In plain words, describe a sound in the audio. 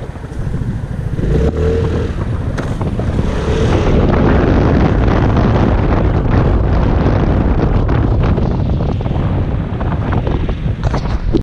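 A scooter engine hums and rises as the scooter pulls away.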